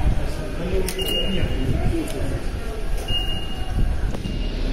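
A ticket gate beeps.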